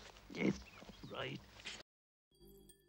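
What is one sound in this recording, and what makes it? An elderly man speaks in a gruff, animated voice.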